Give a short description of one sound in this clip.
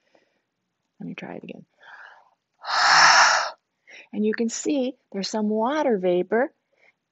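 A woman speaks close by with animation, in a high playful voice.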